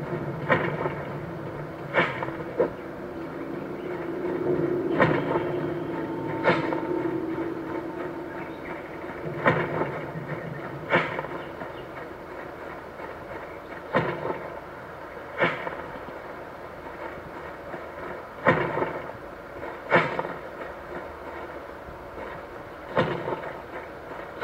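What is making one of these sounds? A mobile game plays sharp bangs through a small phone speaker.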